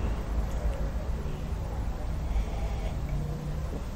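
A man sips from a cup.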